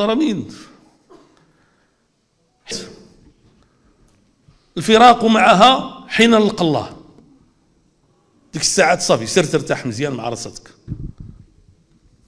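An elderly man speaks forcefully into a microphone in bursts, with pauses between phrases.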